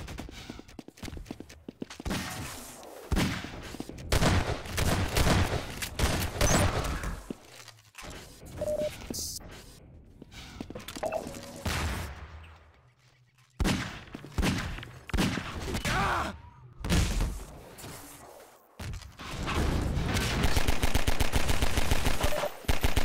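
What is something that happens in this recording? Guns fire in sharp, quick shots.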